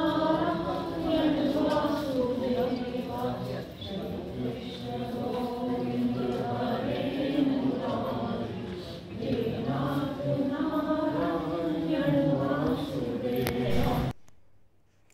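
A group of women sing a slow devotional song together nearby.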